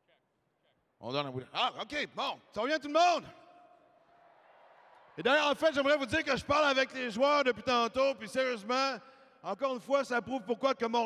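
A middle-aged man speaks into a microphone, heard over loudspeakers in a large echoing arena.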